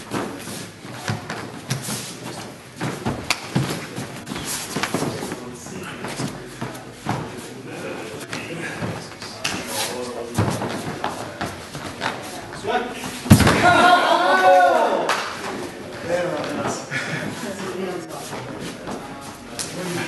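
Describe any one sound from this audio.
Feet shuffle and thump on a padded mat.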